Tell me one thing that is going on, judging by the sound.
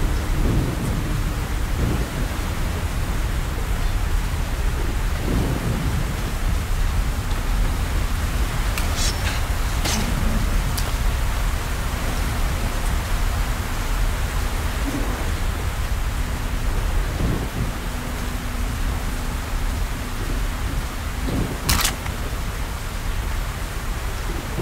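Strong wind howls and roars outdoors.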